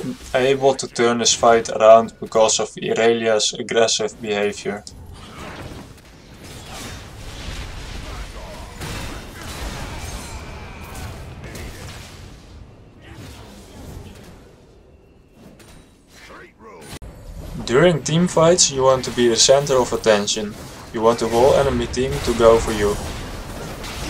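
Spells and weapons crackle and clash in a fast game battle.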